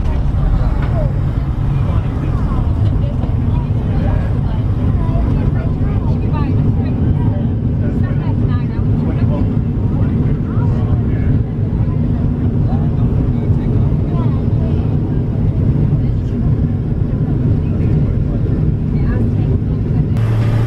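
Tyres rumble over the runway.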